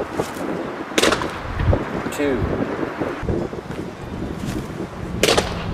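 A thrown baseball thuds into a net with a sharp smack.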